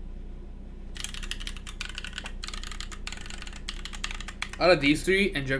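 Keyboard keys clack rapidly under typing fingers.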